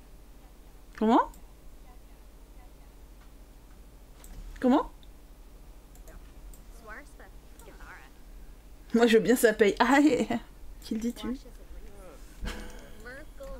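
A young woman talks with animation into a close microphone, with pauses in between.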